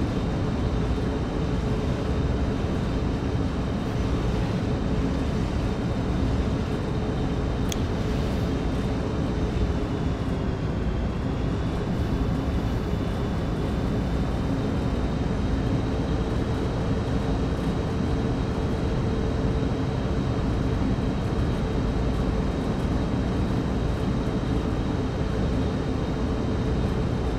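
A diesel locomotive engine drones steadily from inside the cab.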